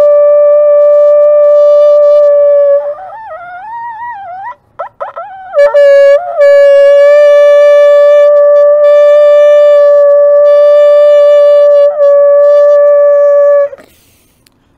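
A wooden flute plays a loud, steady high note, with a short warbling run in between.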